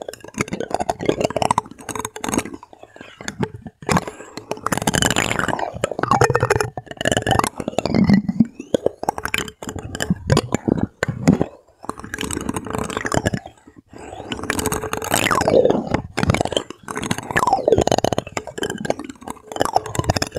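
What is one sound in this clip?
Hands turn and handle a small plastic device.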